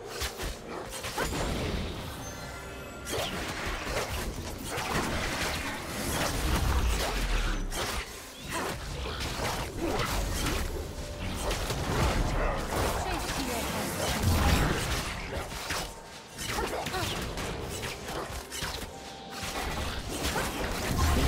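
Game spell effects whoosh, clash and crackle in quick bursts.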